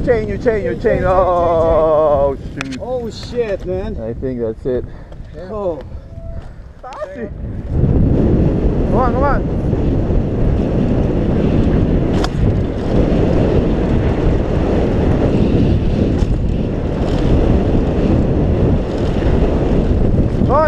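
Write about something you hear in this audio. Bicycle tyres roll and crunch over a gravel trail.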